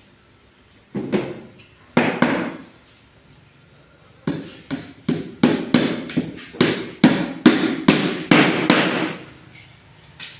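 A hammer knocks sharply on a wooden frame, many times in quick succession.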